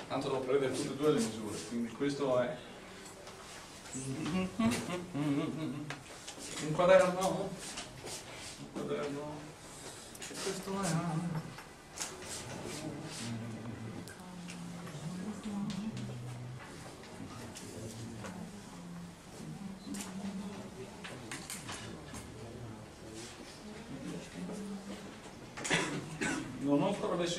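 A middle-aged man speaks calmly, lecturing in a room with some echo.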